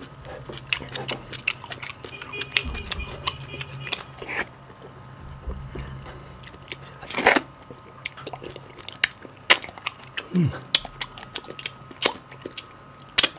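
A man chews food wetly and smacks his lips close to a microphone.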